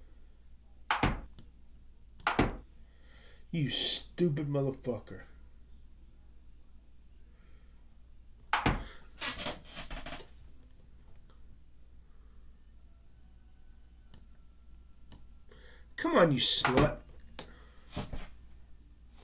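A game piece clicks into place with a short knock.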